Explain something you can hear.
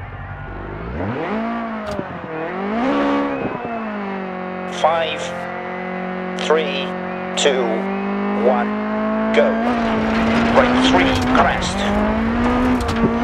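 A rally car engine idles, then revs hard in sharp bursts and pulls away.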